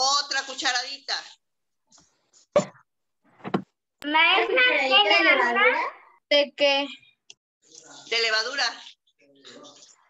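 A young girl speaks with animation over an online call.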